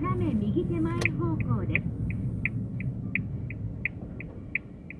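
A car's turn signal ticks at an even pace.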